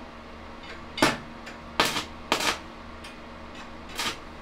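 A welding arc crackles and hisses in short bursts.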